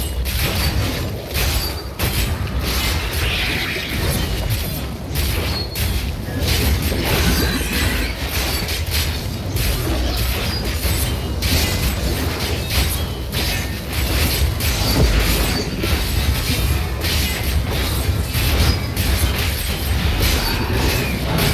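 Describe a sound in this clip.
Magic blasts burst and crackle.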